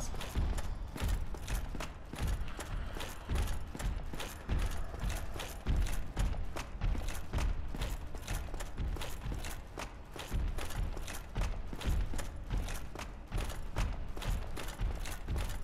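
Armoured footsteps clank quickly and steadily on stone steps.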